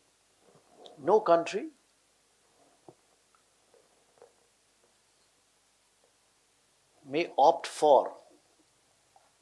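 An elderly man speaks briefly and calmly into a microphone, pausing at length between words.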